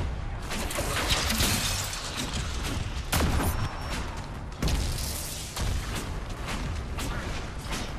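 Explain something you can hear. Magic spells crackle and burst in a fantasy battle.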